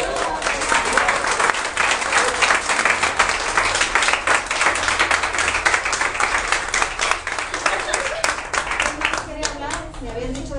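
A crowd claps hands rapidly and loudly.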